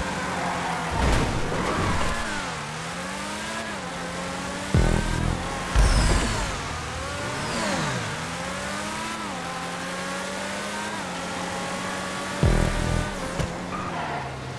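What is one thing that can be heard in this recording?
A car thumps hard over bumps.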